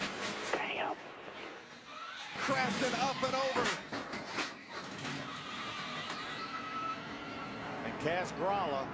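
Tyres screech as cars spin and skid.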